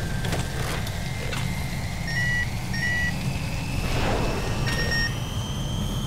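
A metal valve creaks as it is turned.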